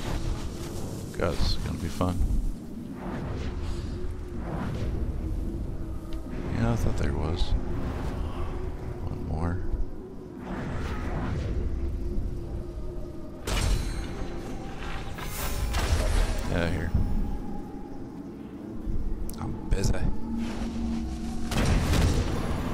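A bow twangs as arrows are loosed, again and again.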